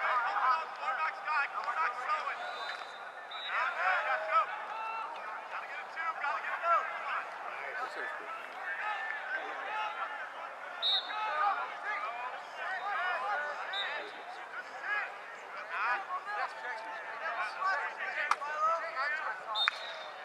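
Young players shout and call out across an open field in the distance.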